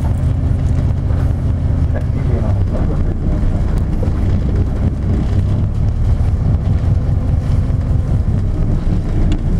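A car engine rumbles steadily as the vehicle drives and turns.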